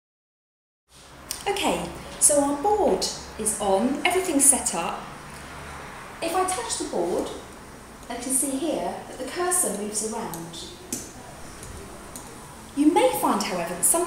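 A middle-aged woman speaks with animation nearby.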